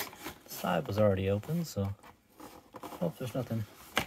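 A cardboard box slides and scrapes as hands open it.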